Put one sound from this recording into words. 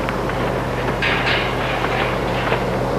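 A wire fence rattles.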